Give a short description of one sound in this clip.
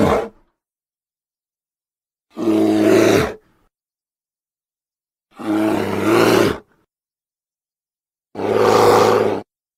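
A bear roars loudly in repeated bursts.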